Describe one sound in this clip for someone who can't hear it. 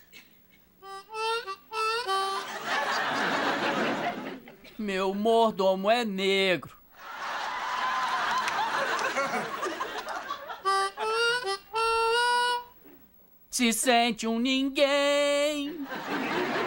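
A young man plays a harmonica in short bursts.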